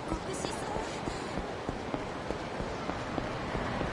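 Footsteps tap quickly on pavement as a man runs.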